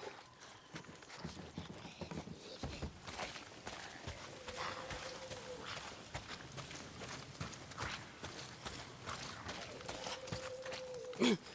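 Footsteps crunch through dry grass and twigs.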